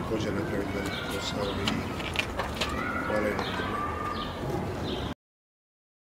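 A middle-aged man speaks calmly into microphones close by, outdoors.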